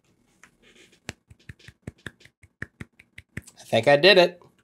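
A young man claps his hands several times.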